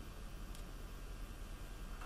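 A small metal clamp clicks as hands adjust it.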